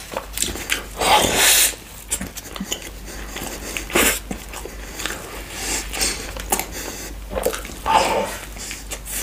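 A man bites into a crispy fried chicken burger close to a microphone.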